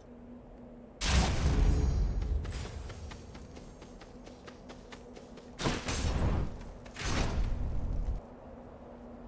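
A loud magical blast bursts out with a roaring rush.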